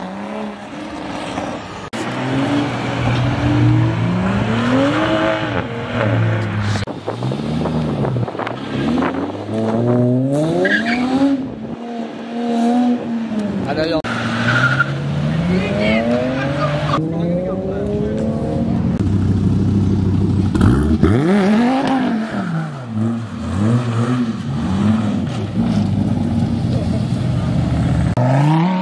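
Loud sports car engines rev and roar as they accelerate past, close by.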